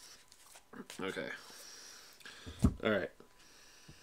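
A deck of cards is set down on a table with a soft tap.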